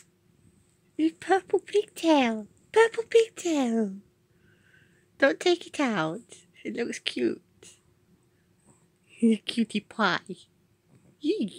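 A small dog whines and howls close by in rising and falling bursts.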